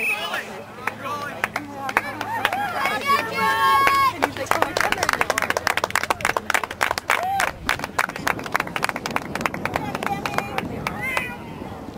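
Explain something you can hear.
Lacrosse sticks clack against each other.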